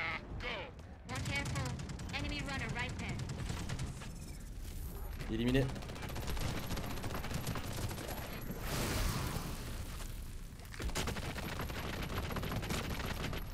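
Gunfire crackles rapidly.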